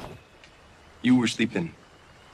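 A young man speaks quietly and calmly.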